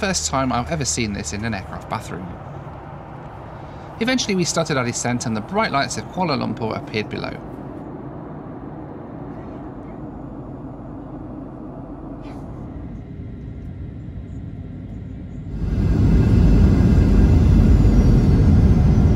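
Aircraft engines hum steadily.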